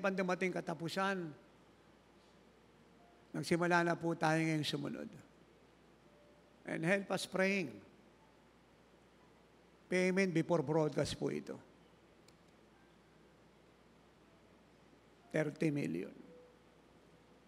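An elderly man speaks slowly into a microphone, in short phrases with long pauses.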